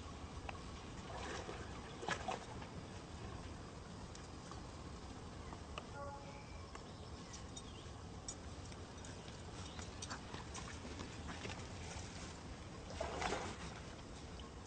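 Water splashes loudly as a monkey thrashes in it.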